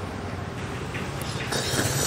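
A man slurps noodles.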